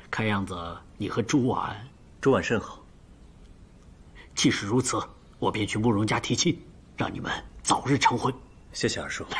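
A man speaks warmly and cheerfully nearby.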